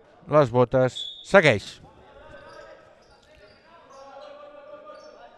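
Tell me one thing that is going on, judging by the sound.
Spectators murmur in the stands.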